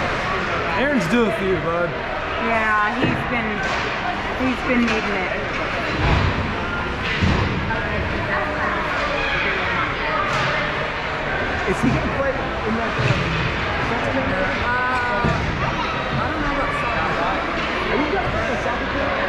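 Hockey sticks knock against pucks and the ice.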